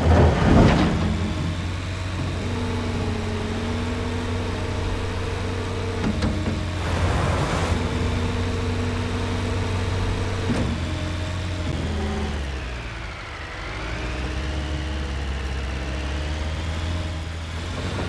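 A heavy diesel engine rumbles and whines steadily.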